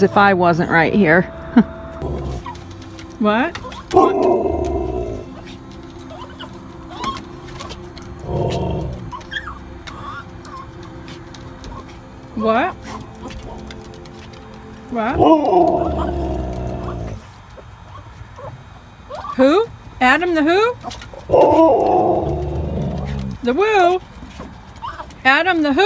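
A husky howls and yodels loudly, close by, in wavering rising and falling cries.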